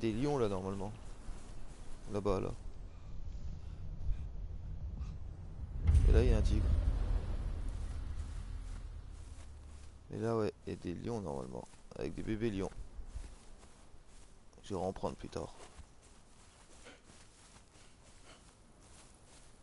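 Footsteps crunch quickly on dry sandy ground.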